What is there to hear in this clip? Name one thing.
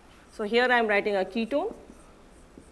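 A woman speaks calmly and clearly nearby.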